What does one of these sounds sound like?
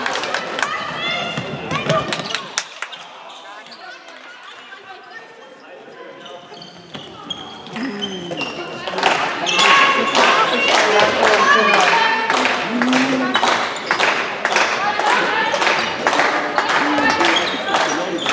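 A handball thuds as it bounces on the floor.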